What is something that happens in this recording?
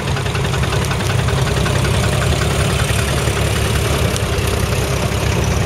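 Another tractor engine putters nearby.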